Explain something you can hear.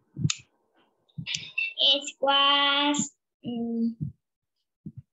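A young woman speaks with animation through an online call.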